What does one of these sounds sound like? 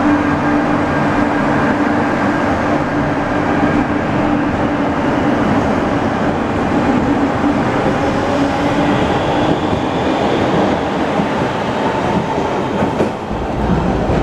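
A subway train rumbles and hums loudly as it pulls out of an echoing underground station.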